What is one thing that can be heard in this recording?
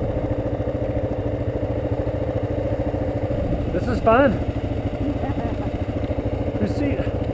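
A motorcycle engine runs with a steady low rumble.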